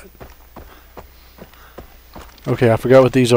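Footsteps tread softly on a dirt path.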